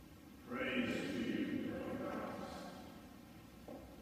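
A man reads aloud in a calm voice, echoing in a large hall.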